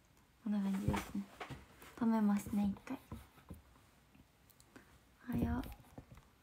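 A young woman speaks softly and close to a microphone, in short phrases.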